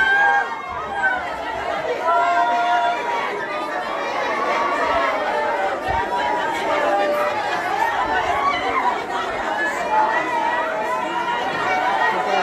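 A crowd of young men and women talk and shout excitedly close by.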